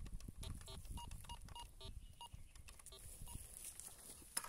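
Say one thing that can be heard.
A metal detector beeps in quick repeated tones.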